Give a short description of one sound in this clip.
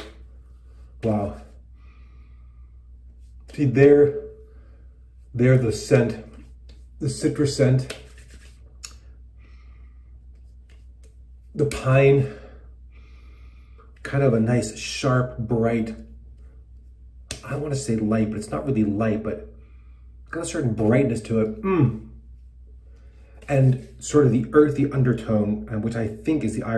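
A middle-aged man speaks calmly and close up, in short bursts with pauses.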